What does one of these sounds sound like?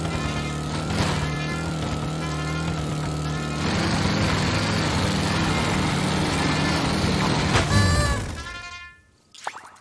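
A lawn mower engine drones steadily, then dies away.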